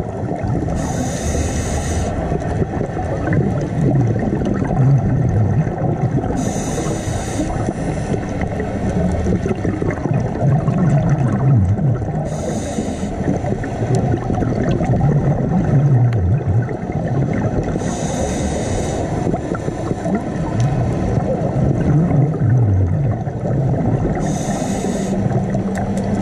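Air bubbles rush and gurgle out of a diver's regulator every few seconds, close by underwater.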